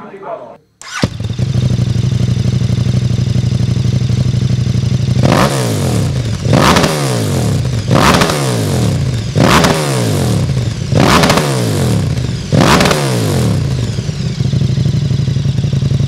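A motorcycle engine starts and idles with a deep, throbbing rumble.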